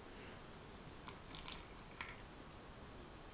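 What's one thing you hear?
Milk pours and splashes into a glass bowl.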